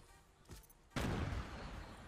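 An explosion booms in a video game.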